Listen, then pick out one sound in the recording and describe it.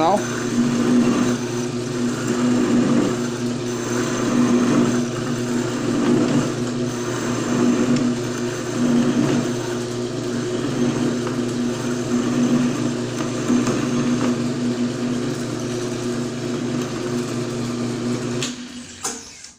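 A metal lathe hums steadily as its chuck spins.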